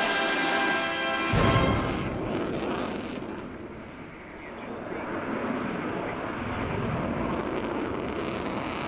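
A jet engine roars loudly overhead with a high whine, then rumbles on as the aircraft banks away.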